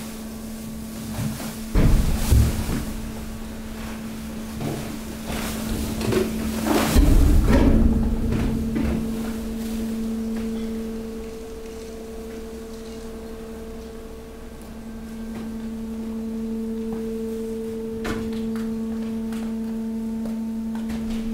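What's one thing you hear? A compactor machine hums steadily.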